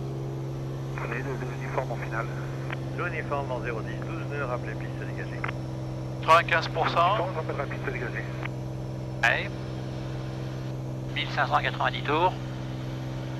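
A man speaks calmly over a headset radio intercom.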